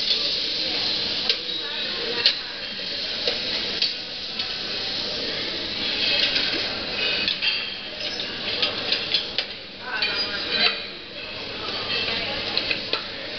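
Gas burners hiss steadily.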